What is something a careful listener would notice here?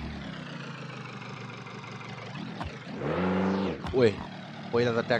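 A car engine idles and then revs up briefly.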